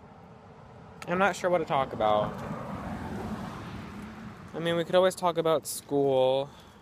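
A young man talks casually, close to the microphone.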